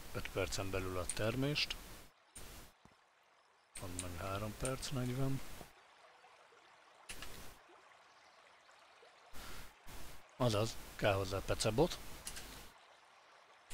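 A man talks casually into a nearby microphone.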